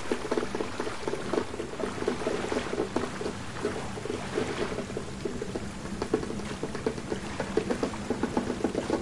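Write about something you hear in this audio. A child splashes while wading through shallow water.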